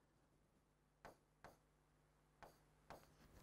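A marker taps and scratches on a board.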